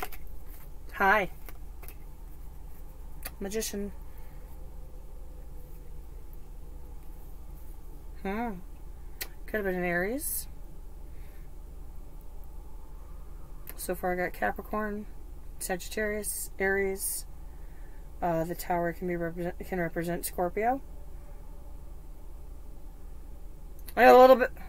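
A woman speaks calmly and close by, in short phrases.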